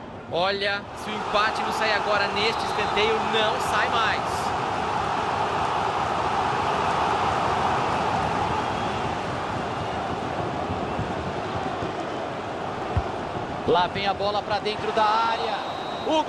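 A stadium crowd roars loudly and steadily.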